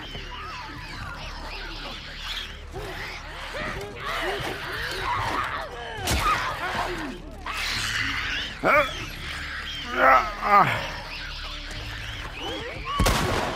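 A creature snarls and shrieks close by.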